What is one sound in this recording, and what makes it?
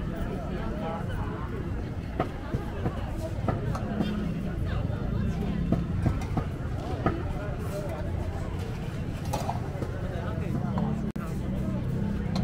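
A metal spatula scrapes and taps on a hot griddle.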